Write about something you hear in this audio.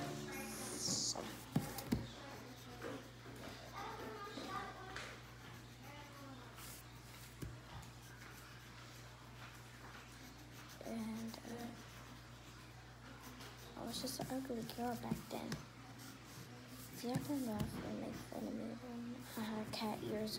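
A young girl speaks calmly close by.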